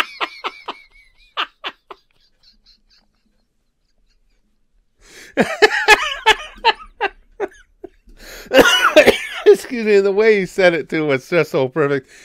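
A middle-aged man laughs loudly and heartily close to a microphone.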